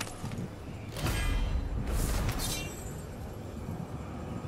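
A magical shimmer swells with a glittering whoosh.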